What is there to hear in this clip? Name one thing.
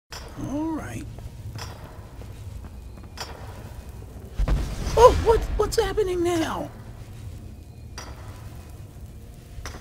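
Magic flames crackle and hum steadily.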